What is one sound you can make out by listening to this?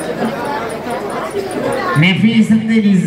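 A man speaks loudly into a microphone over loudspeakers outdoors.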